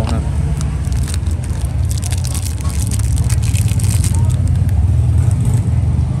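Plastic wrapping crinkles and rustles between fingers.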